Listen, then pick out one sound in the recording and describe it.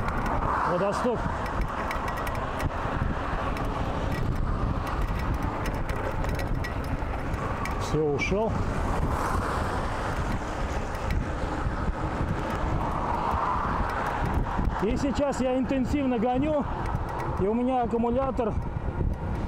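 Bicycle tyres hum and rattle on rough asphalt.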